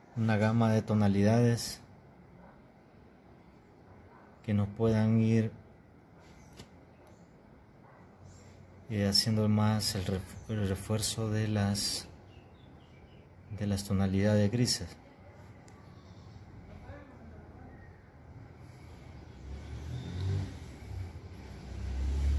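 A cotton swab rubs softly on paper.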